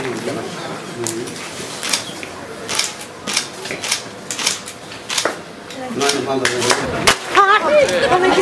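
People clap their hands in scattered applause.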